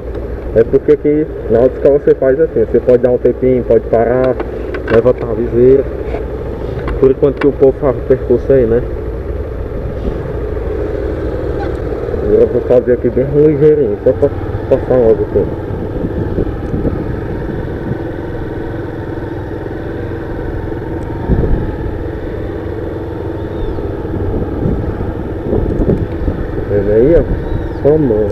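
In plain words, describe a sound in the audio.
A motorcycle engine hums steadily close by as the bike rides slowly.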